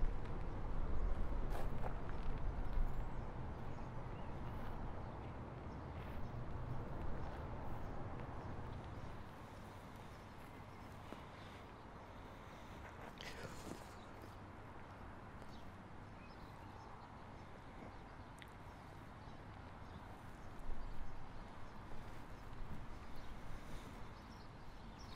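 Water laps gently against a stone edge.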